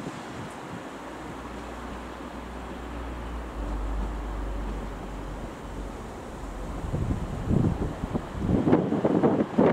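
A train rumbles as it approaches and passes close by.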